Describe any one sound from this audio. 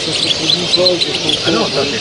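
A small bird flutters its wings.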